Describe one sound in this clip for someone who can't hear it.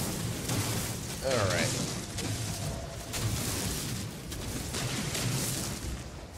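A laser beam hums and crackles steadily as it drills into rock.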